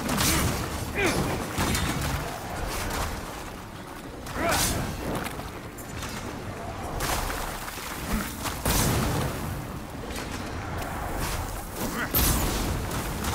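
Sword strikes whoosh and clang.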